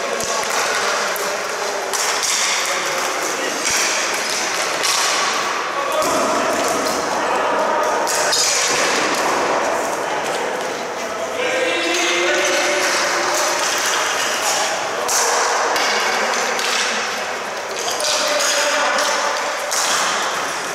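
Sticks clack against the ball and floor.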